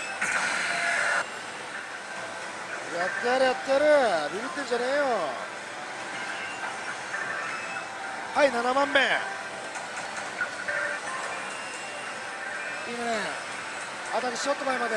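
A slot machine plays electronic jingles and beeps.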